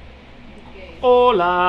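A parrot calls out in a sing-song, voice-like tone.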